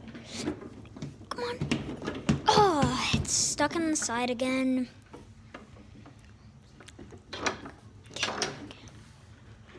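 A table football rod knocks and rattles against the table.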